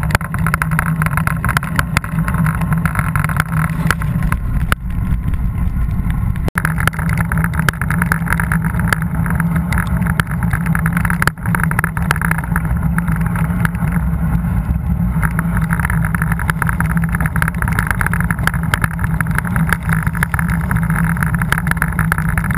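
Wind roars loudly past the microphone.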